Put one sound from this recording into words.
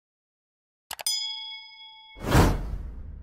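A small bell chimes and rings out.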